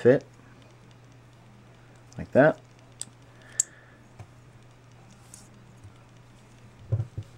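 A cord rustles and taps softly as it is handled and knotted.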